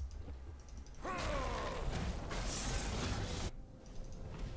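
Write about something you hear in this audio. Game fighting effects whoosh and clash.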